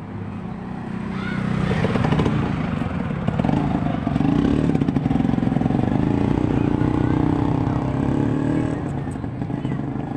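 A motorcycle engine roars as it passes close by, then fades.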